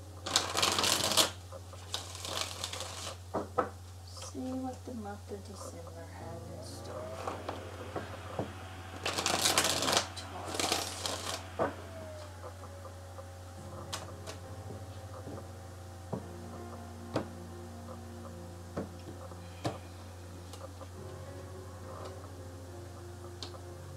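Playing cards are shuffled with quick riffling bursts.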